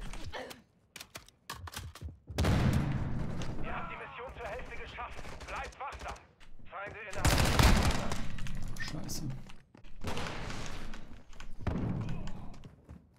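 A young man talks with animation through a close microphone.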